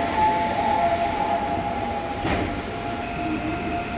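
Train doors slide shut.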